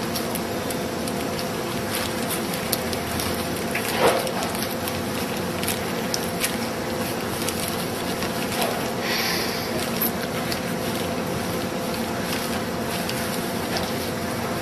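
Plastic gloves rustle and crinkle as hands press and roll food.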